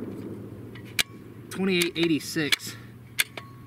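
A rifle bolt clacks as it is worked open and shut.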